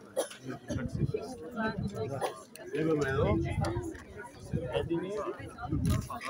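Adult men and women chat softly nearby.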